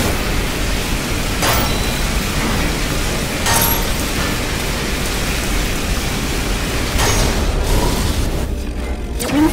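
A laser beam blasts steadily with a loud roaring hiss.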